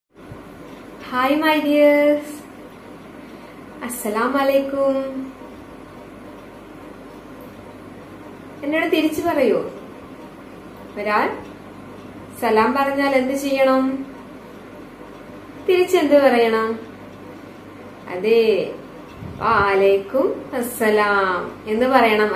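A young woman speaks slowly and clearly close to a microphone, pausing between phrases.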